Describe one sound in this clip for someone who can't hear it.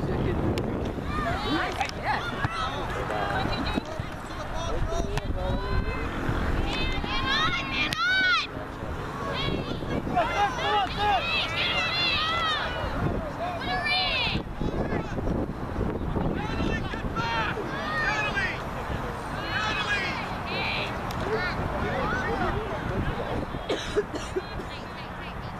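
Young girls shout and call out to each other outdoors.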